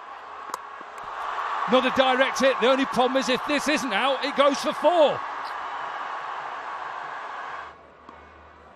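A large stadium crowd cheers loudly.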